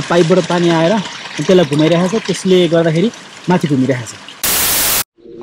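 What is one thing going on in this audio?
Water trickles and splashes in a small channel.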